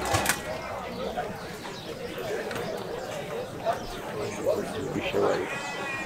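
Cattle low in a pen.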